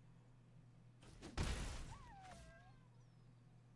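A digital card game plays a whooshing magical impact effect.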